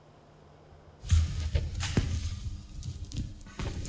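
A brush scrapes across a canvas.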